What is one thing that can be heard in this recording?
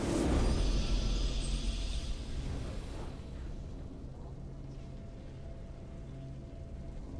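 A triumphant game victory fanfare swells loudly and then fades away.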